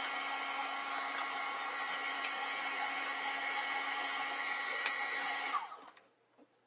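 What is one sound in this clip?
A heat gun blows with a steady whirring hum, then switches off.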